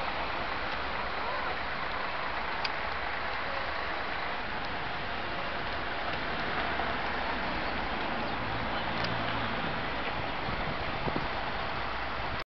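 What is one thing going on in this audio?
Traffic hums steadily outdoors.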